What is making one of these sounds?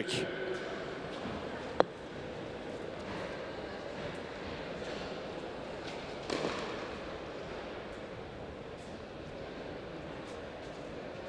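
Footsteps scuff softly on a clay court.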